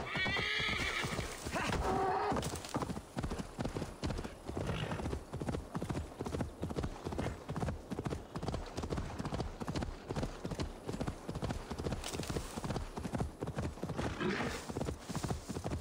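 Horse hooves gallop steadily over soft ground.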